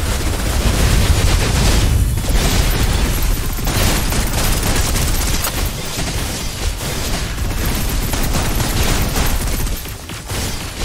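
Rapid gunfire and energy blasts crackle throughout.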